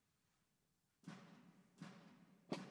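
A snare drum is struck hard with sticks in a large echoing hall.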